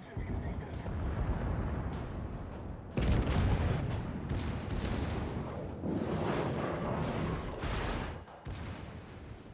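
Heavy naval guns fire in loud booming blasts.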